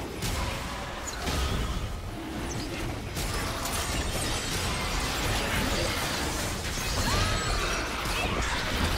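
Spell and combat effects crackle and whoosh in a busy game fight.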